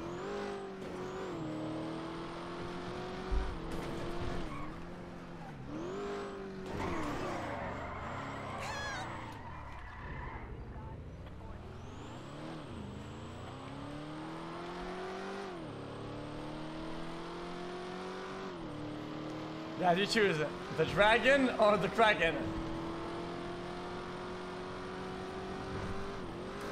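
A car engine hums and revs as it drives, rising and falling in pitch.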